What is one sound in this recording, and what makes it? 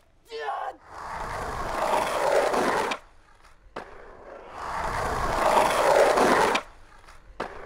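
Skateboard wheels roll loudly over rough asphalt.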